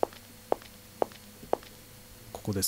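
Footsteps tap at an even pace.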